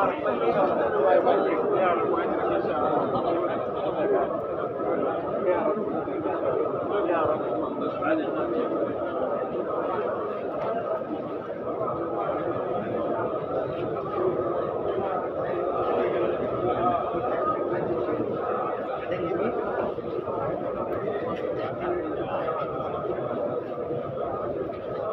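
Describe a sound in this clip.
A large crowd of men murmurs and chatters close by, outdoors.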